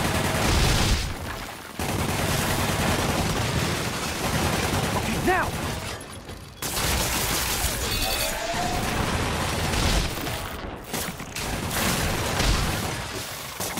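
Loud explosions boom one after another.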